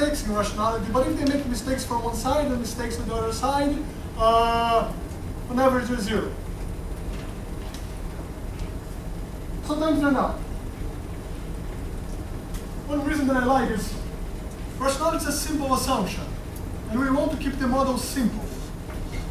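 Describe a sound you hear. A young man lectures loudly in an echoing room, pausing often.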